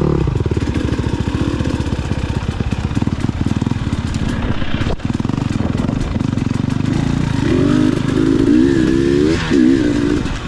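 A dirt bike engine throbs and revs up close.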